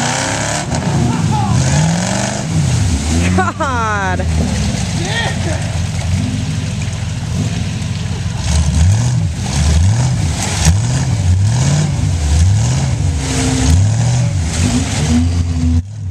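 Tyres churn and splash through thick mud.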